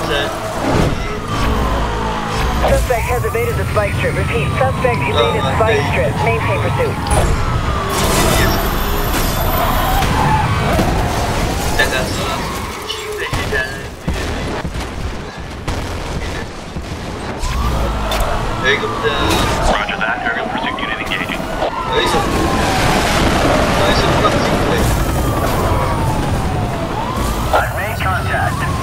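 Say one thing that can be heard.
Police sirens wail up and down nearby.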